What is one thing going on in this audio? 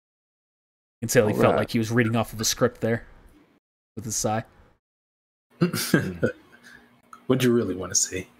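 A man talks with animation over an online call microphone.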